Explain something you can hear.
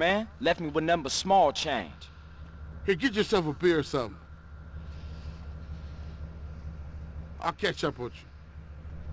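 A young man talks casually and up close.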